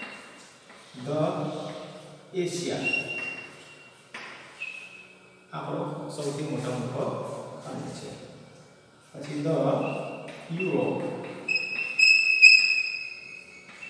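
A man speaks clearly and steadily, as if explaining to a class.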